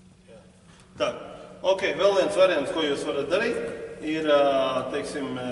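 A man speaks calmly in an echoing hall.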